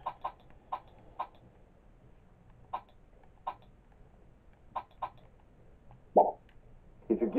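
Short electronic clicks sound as game menu options change.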